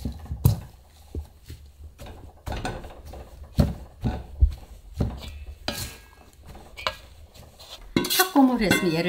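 A metal spatula scrapes and stirs dry beans in a metal bowl.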